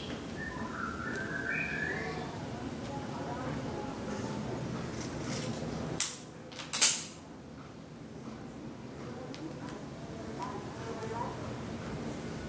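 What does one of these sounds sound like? Handlebar tape rustles as hands wrap it tightly.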